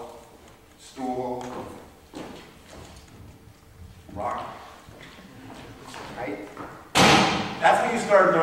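A man speaks through a microphone in a large echoing hall.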